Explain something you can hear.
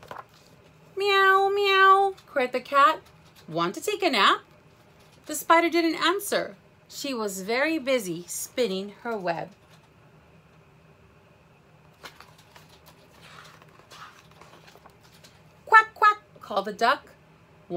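A woman reads aloud with animation, close by.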